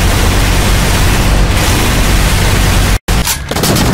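Energy bolts explode with loud crackling bursts.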